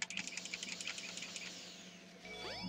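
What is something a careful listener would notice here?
Rapid, bright electronic chimes ring out from a video game.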